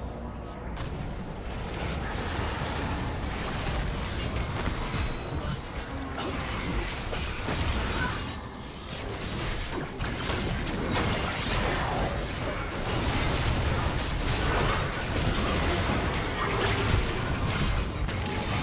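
Game weapons strike with repeated thuds and clashes.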